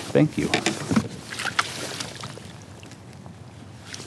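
A fish splashes and thrashes in water close by.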